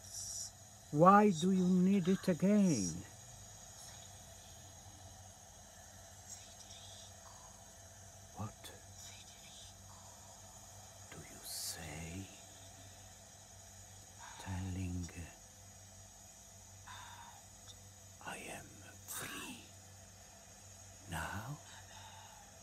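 A woman speaks softly and slowly, close by.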